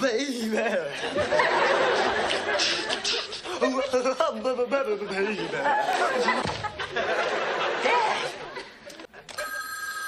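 A teenage boy sings loudly and tunelessly along to music.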